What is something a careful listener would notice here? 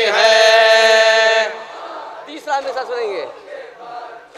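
A young man sings out a long, loud, held note through a microphone.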